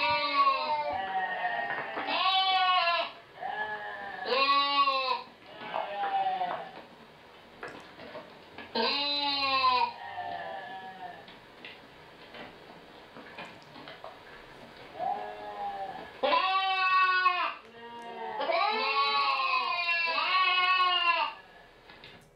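Sheep bleat loudly and repeatedly, close by.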